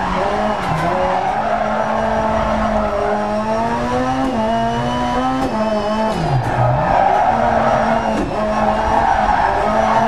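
Tyres crunch and skid over loose gravel.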